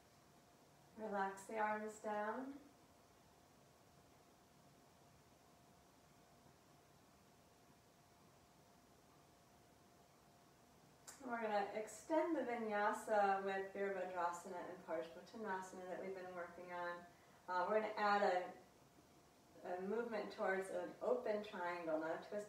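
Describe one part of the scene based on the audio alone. A young woman speaks calmly and gently, close to a microphone.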